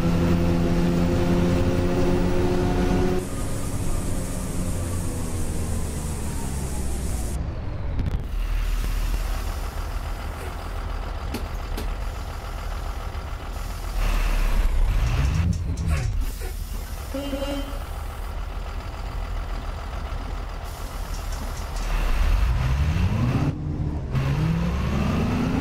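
A bus engine rumbles, slowing down and later speeding up again.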